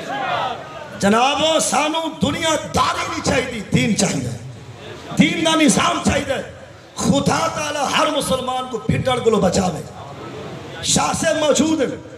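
A man speaks forcefully into a microphone, heard over a loudspeaker.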